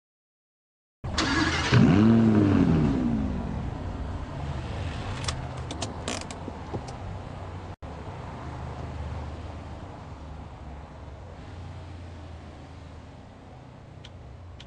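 A sports car engine idles with a low, steady rumble.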